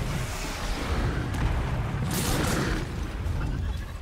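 Explosions burst with loud, crackling booms.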